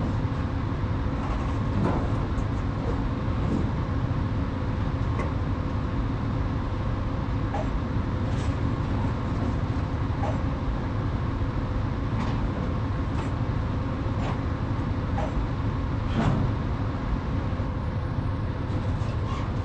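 A heavy truck engine drones steadily.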